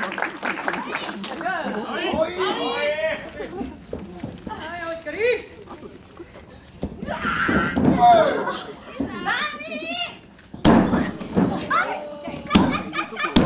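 Spectators cheer and shout in an echoing hall.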